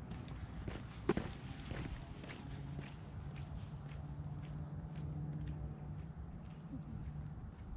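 Footsteps tap on wet pavement and fade into the distance.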